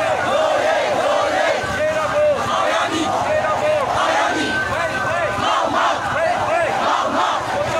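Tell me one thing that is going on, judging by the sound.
A large crowd of men and women chants and shouts together close by.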